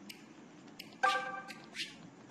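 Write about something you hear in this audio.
A short electronic chime sounds as a game menu opens.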